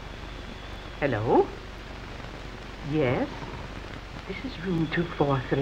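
An elderly woman talks into a telephone.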